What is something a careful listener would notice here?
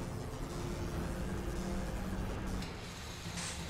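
Heavy machinery gears grind and clank with a low rumble.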